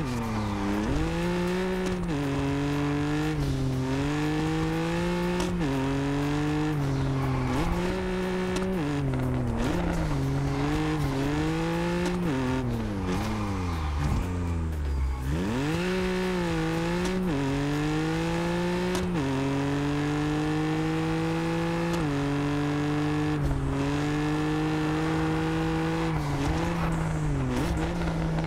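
A sports car engine revs hard, rising in pitch and dropping sharply with each gear change.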